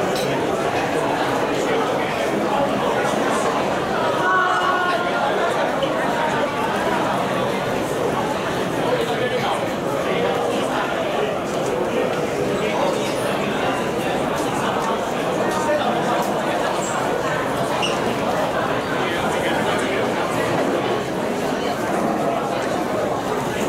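A crowd of men and women chatters and calls out nearby.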